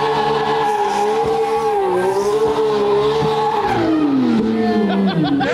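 A sports car engine roars at high revs, then drops in pitch.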